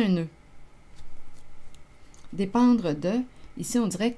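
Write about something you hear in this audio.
Playing cards rustle softly as a deck is handled.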